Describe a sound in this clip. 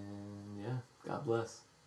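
A man sings a short held note close by.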